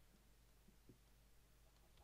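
A wooden block cracks and breaks.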